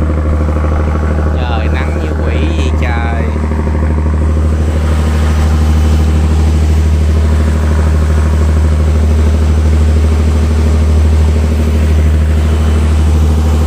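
A boat engine drones steadily and loudly.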